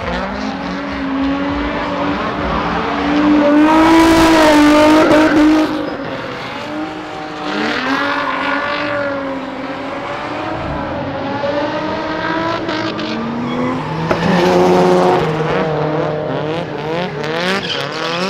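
A car engine revs hard and howls, rising and falling.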